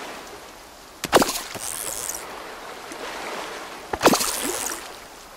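Water splashes sharply as a fish tugs at the line.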